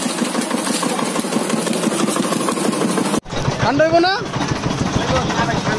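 A sugarcane press grinds and rattles.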